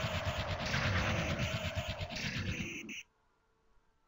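Swords clash and slash in a loud, roaring fight.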